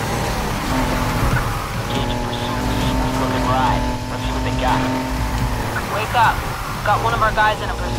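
Tyres screech as a race car drifts through turns.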